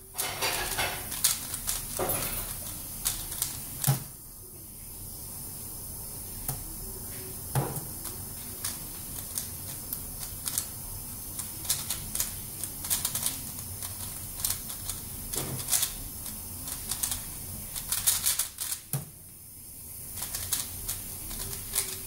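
A puzzle cube clicks and clatters rapidly as it is twisted by hand.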